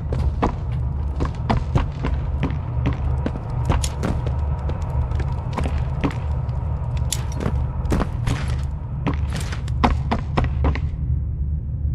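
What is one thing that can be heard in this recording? Footsteps knock on a hard floor at a quick pace.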